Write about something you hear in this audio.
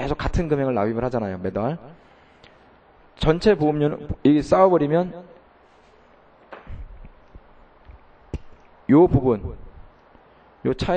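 A middle-aged man lectures through a microphone in bursts, with pauses between phrases.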